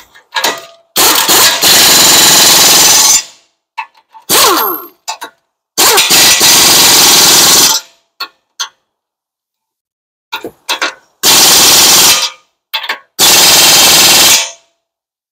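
An air impact wrench rattles loudly in long bursts.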